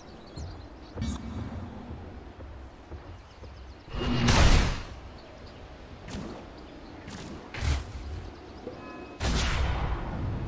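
Fantasy spell effects whoosh and crash in short bursts.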